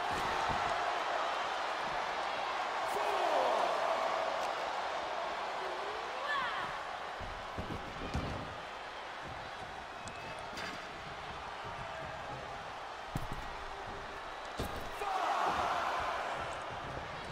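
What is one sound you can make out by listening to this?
A crowd cheers loudly in a large echoing arena.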